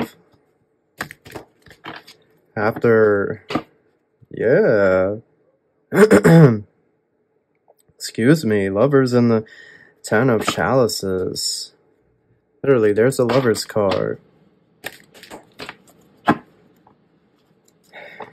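Playing cards riffle and patter as they are shuffled by hand.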